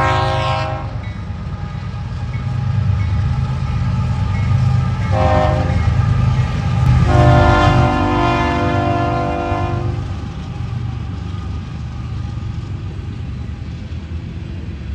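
A diesel locomotive rumbles past at low pitch.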